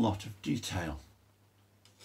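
A man speaks briefly and calmly close by.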